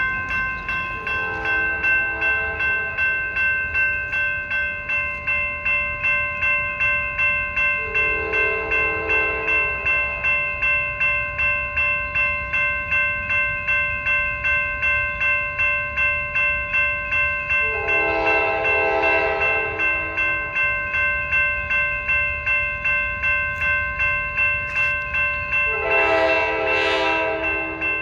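A train horn blows in long, loud blasts from a distance, coming closer.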